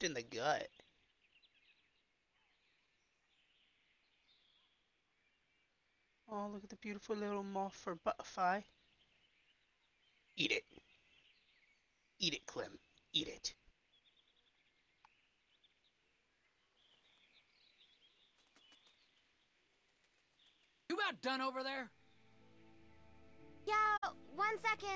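A young man talks into a close microphone in short bursts.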